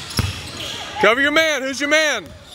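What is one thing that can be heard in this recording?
Sneakers squeak sharply on the court.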